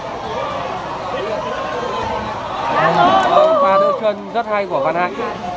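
A large outdoor crowd chatters and cheers.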